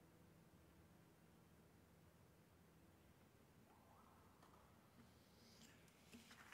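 A classical guitar plays softly.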